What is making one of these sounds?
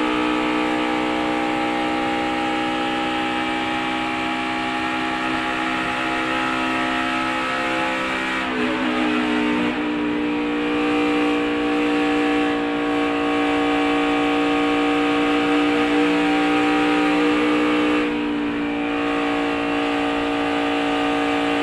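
A race car engine drones loudly at high speed, shifting pitch as the car rounds a bend.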